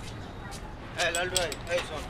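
A young boy asks for something nearby.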